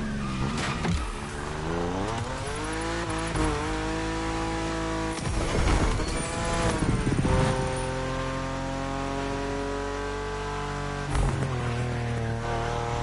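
A sports car engine roars and revs at high speed, rising and dropping in pitch through gear changes.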